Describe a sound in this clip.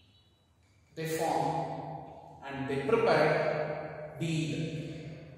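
A man lectures nearby, speaking clearly and with emphasis.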